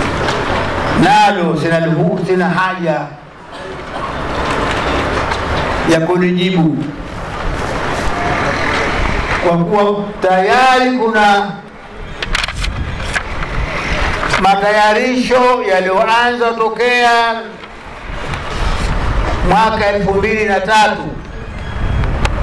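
A crowd of men and women sings together in short phrases.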